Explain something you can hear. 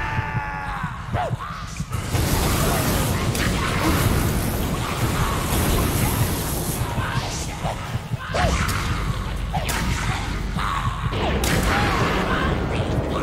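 Weapons clash and thud in a fierce fight.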